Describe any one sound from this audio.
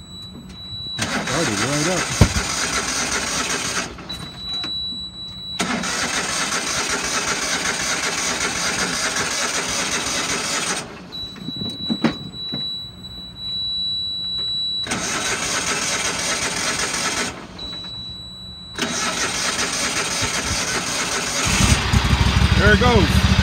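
A lawn mower engine roars loudly close by, cutting in and out in bursts.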